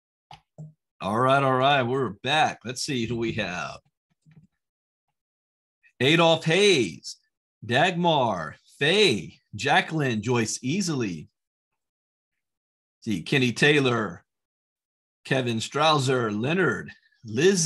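A middle-aged man speaks calmly over an online call, in short bursts with pauses.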